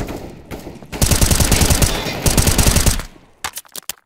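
A rifle fires in rapid bursts at close range.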